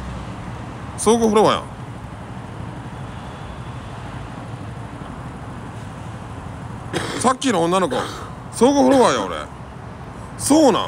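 A man speaks close to a microphone in short, animated bursts.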